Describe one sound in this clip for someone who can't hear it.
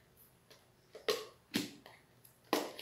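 Plastic lids and cups clack and snap as they are handled.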